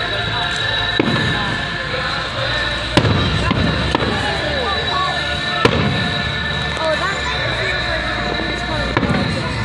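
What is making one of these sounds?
Fireworks burst with sharp bangs.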